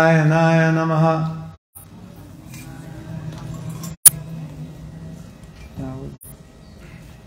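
An elderly man chants in a long, held tone through a microphone in a large echoing hall.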